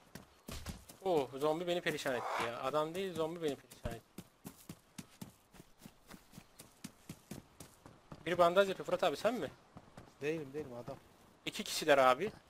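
Footsteps crunch quickly over gravel and grass.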